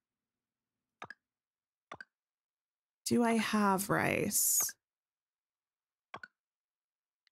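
Soft menu clicks sound as items are selected.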